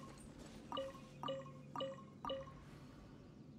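Short bright chimes ring four times in quick succession.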